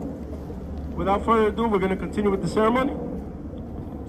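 A man speaks loudly outdoors, calling out to a group.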